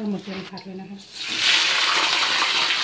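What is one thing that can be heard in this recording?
Raw squid hits a hot wok with a loud burst of sizzling.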